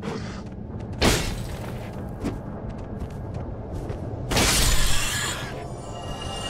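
Sword blows strike a creature with sharp, heavy hits.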